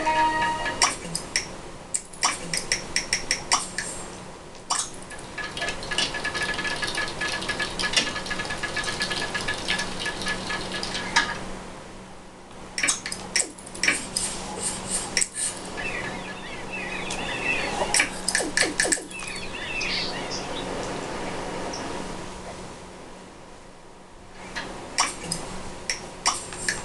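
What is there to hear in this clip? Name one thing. Cheerful electronic music plays from a television speaker.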